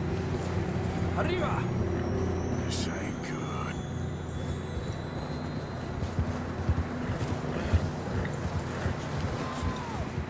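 Horses' hooves crunch through deep snow.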